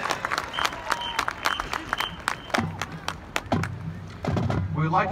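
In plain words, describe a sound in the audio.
A marching band's drums tap out sharp beats outdoors.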